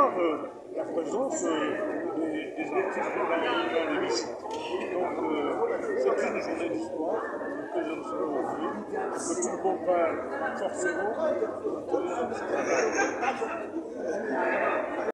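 An older man speaks steadily and earnestly, close to the microphone.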